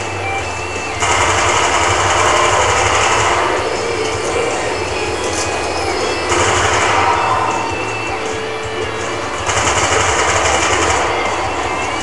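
Gunfire from a game rattles in bursts through a television speaker.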